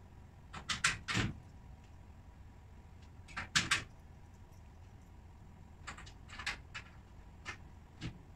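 Parts knock and clatter against wooden panels as a cabinet is assembled.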